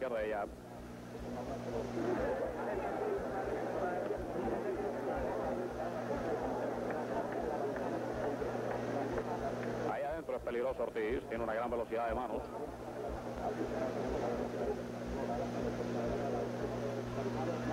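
A large crowd cheers and murmurs in a big echoing hall.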